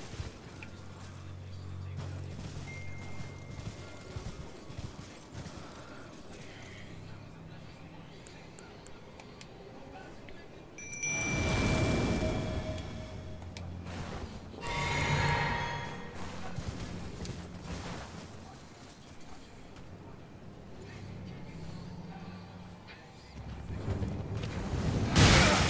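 Horse hooves thud steadily on grass.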